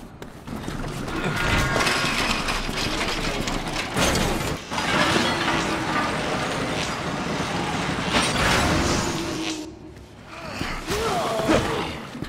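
Heavy footsteps clatter on a metal walkway.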